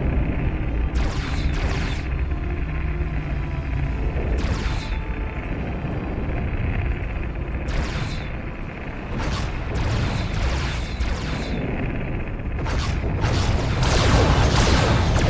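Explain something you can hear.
A spaceship's laser weapon fires in sharp, hissing bursts.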